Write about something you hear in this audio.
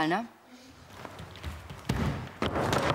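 Bare feet thud quickly on a wooden floor.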